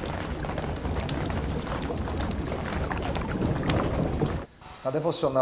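A wood fire crackles and roars.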